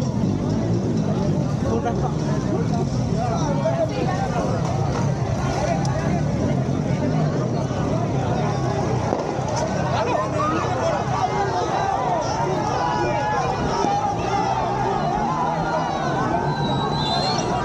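A large crowd of men and women chatters and shouts all around, outdoors.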